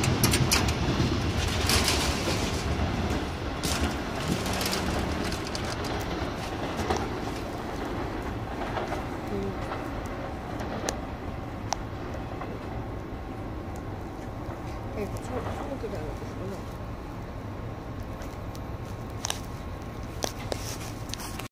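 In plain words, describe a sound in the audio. Distant city traffic hums steadily.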